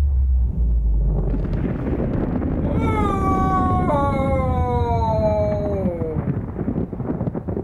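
A deep underwater rumble churns steadily.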